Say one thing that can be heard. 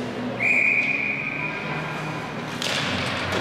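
A referee's whistle blows sharply once.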